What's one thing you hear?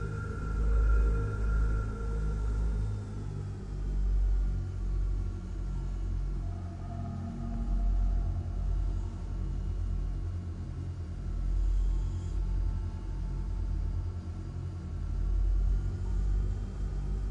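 A spacecraft engine rumbles low, swelling and easing.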